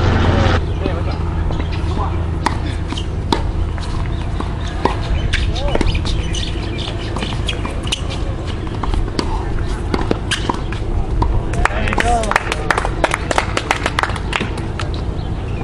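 Tennis balls are hit with rackets in sharp pops, outdoors.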